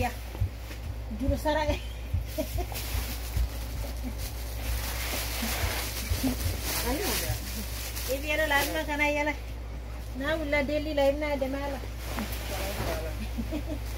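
Stiff fabric rustles and crinkles.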